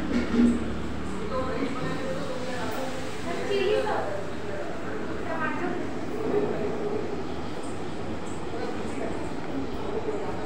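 Young women and men chatter together nearby.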